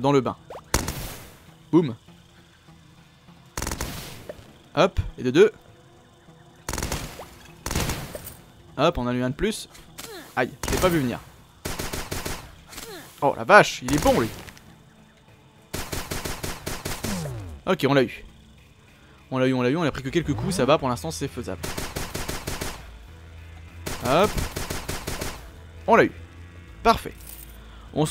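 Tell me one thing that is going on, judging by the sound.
Short laser-like blasts fire in quick bursts.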